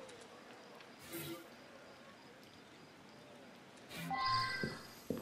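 A bright electronic chime rings.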